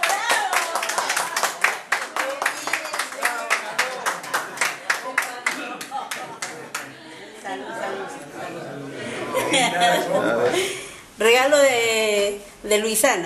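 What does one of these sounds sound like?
A crowd of men and women sing loudly together.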